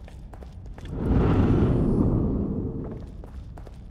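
A younger man calls out questioningly.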